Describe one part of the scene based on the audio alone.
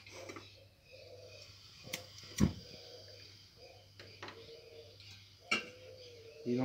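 A gas burner clicks as it is lit.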